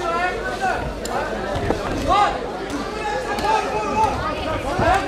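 A crowd of men and women shouts and cheers loudly all around.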